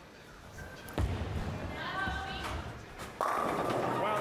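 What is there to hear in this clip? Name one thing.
A bowling ball thuds onto a lane and rolls down it.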